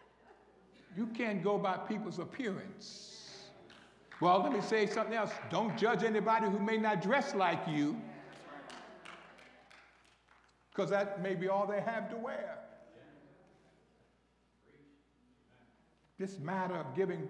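A man preaches into a microphone with animation, in bursts, heard over loudspeakers in a large echoing hall.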